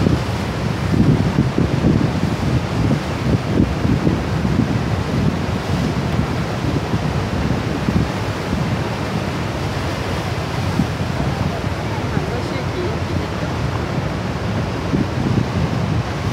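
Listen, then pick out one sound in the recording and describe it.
A large waterfall roars steadily nearby.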